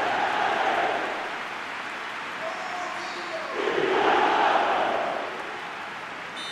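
A stadium crowd cheers and roars, then fades.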